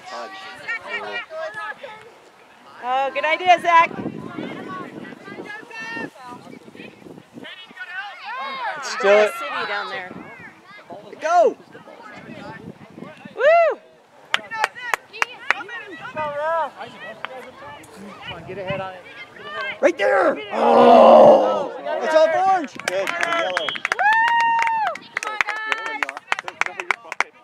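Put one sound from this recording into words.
Women and children shout and cheer close by, outdoors.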